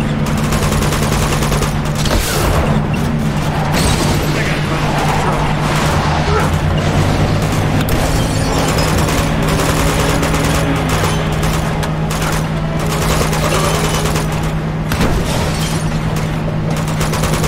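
A truck engine roars steadily.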